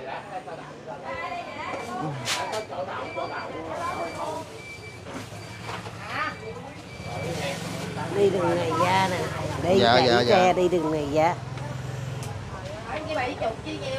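A lively street murmurs with distant voices outdoors.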